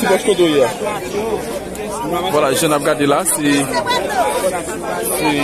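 A crowd of men talk and shout over one another outdoors.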